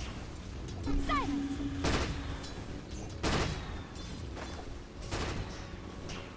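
Spell blasts and weapon impacts burst in a game battle.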